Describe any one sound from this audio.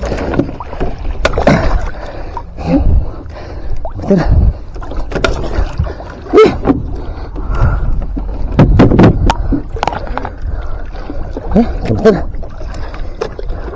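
A hooked fish thrashes and splashes in the water.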